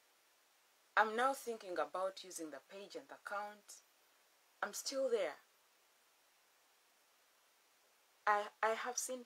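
A woman speaks calmly and close by, pausing between phrases.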